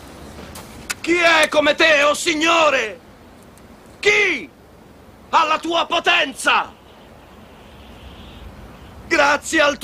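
A man shouts loudly with passion outdoors.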